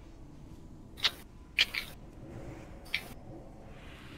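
Game spell effects crackle and burst.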